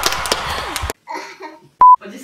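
A teenage girl laughs softly close by.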